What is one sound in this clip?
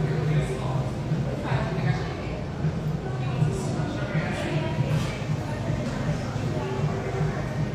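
A woman speaks calmly and close up.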